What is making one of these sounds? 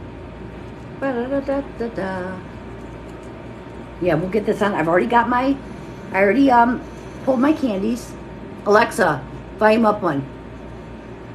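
A middle-aged woman talks casually close by.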